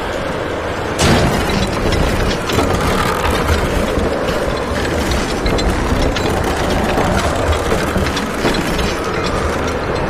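A loud mechanical rumble starts suddenly and goes on.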